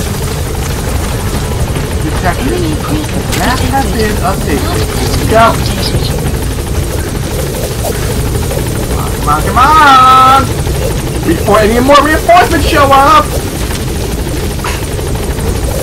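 A helicopter's rotors thump and roar close by.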